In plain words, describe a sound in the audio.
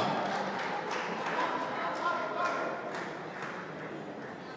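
A crowd cheers and applauds in a large echoing hall.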